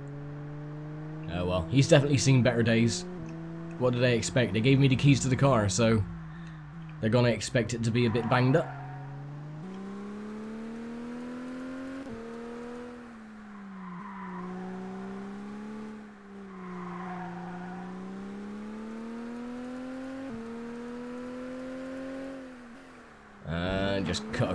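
A racing car engine hums steadily, rising and falling in pitch as it shifts gears.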